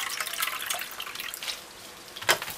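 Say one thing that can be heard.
Dry beans rattle and clink against a glass bowl.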